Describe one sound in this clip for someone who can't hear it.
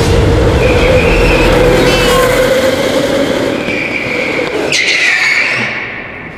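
A go-kart engine buzzes steadily nearby.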